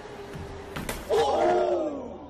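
A person thuds onto a hard floor.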